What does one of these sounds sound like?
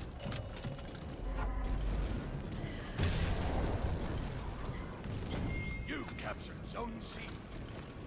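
Steel blades clash and ring sharply in a sword fight.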